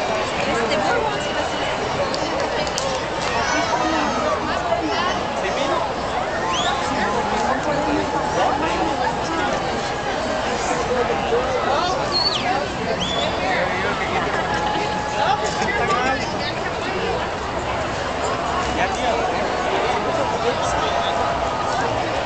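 A dense crowd chatters and cheers loudly outdoors.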